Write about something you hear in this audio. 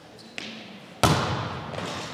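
A volleyball is struck hard in a serve.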